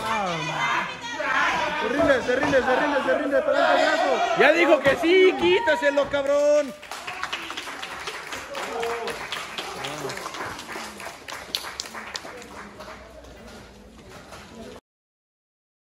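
A crowd of spectators shouts and cheers loudly nearby.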